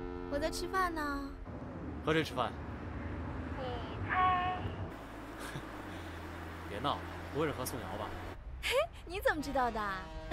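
A young woman talks cheerfully on a phone.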